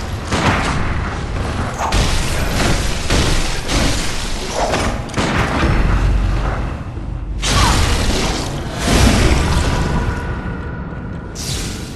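Blades slash and strike in a fast, loud fight.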